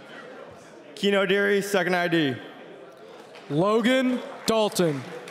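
A young man shouts loudly into a microphone, heard over loudspeakers in a large echoing hall.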